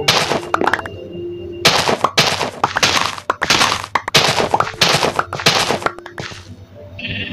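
Crisp crunching sounds come as wheat is broken in quick bursts.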